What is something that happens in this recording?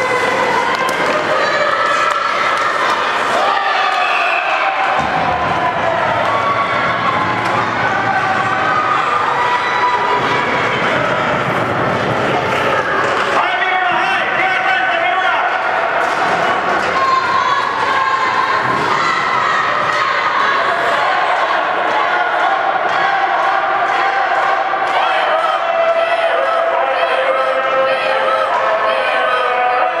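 Young children shout and cheer in an echoing arena.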